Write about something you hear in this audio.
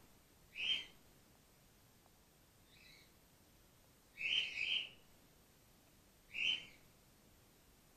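A small bat gives short, high squeaks.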